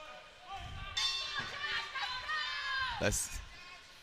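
A crowd cheers and shouts in a large hall.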